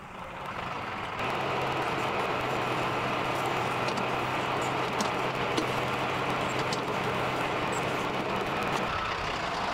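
A backhoe bucket scrapes and digs into gravel and soil.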